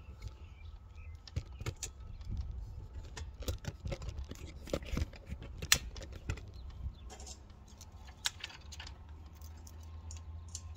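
A metal-framed panel knocks and rattles as someone handles it up close.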